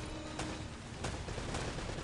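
Pistol shots ring out.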